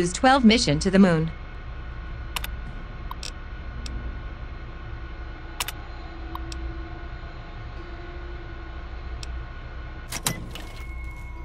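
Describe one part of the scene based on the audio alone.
Computer terminal keys click sharply now and then.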